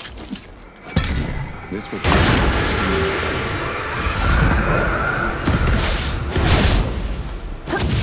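A magical whoosh rushes past and fades.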